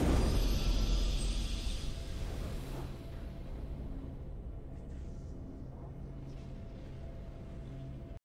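A game victory chime plays softly.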